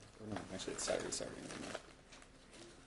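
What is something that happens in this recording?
A bag rustles as it is handled close by.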